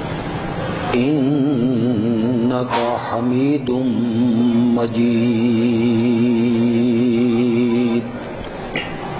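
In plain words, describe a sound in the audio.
A man chants melodiously into a microphone, echoing in a large hall.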